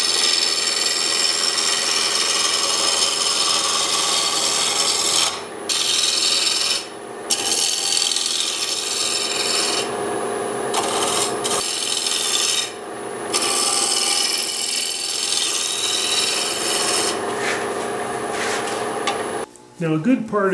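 A chisel cuts into wood spinning on a lathe with a steady rough hiss.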